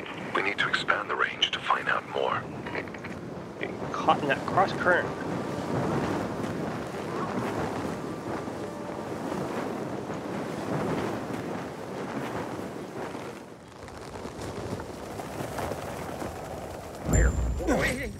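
Wind rushes steadily past a paraglider in flight.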